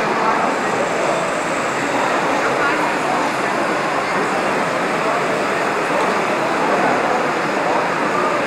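A crowd of adults and children chatters all around in a large echoing hall.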